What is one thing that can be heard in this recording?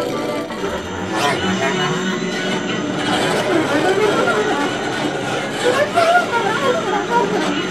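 Electronic sounds hum and warble from a laptop.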